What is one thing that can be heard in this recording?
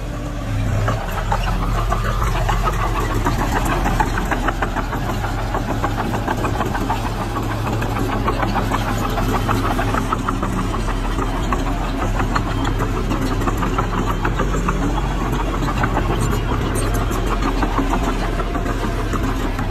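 Bulldozer tracks clank and squeak as they roll over dirt.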